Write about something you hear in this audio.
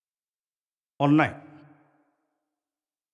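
A man speaks out loudly in a room that echoes a little.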